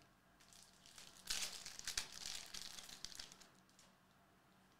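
A foil card pack crinkles as hands tear it open.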